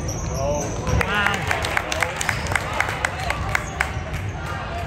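A basketball bounces repeatedly on a wooden floor in an echoing gym.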